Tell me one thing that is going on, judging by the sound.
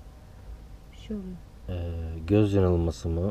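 A man speaks in a low voice close by.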